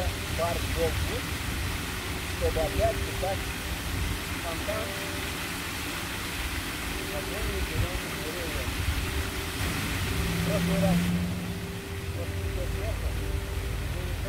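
An elderly man talks calmly outdoors, close by.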